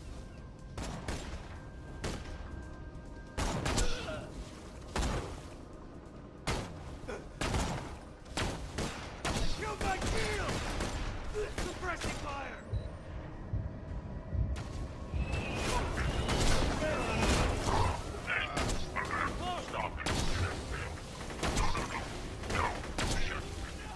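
Sniper rifle shots crack loudly, one at a time.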